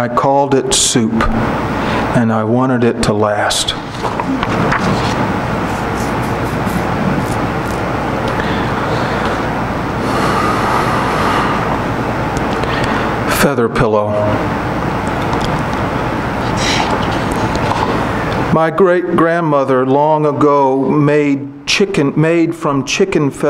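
A man reads aloud calmly into a microphone.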